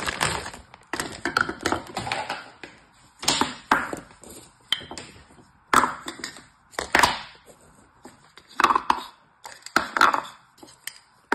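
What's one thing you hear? Plastic moulds clack softly on a table.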